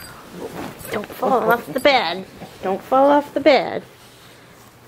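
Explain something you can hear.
Dogs growl and whine playfully.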